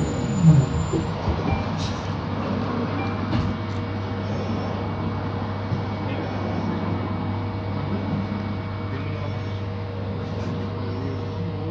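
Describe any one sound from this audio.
The bus rattles and creaks softly as it moves.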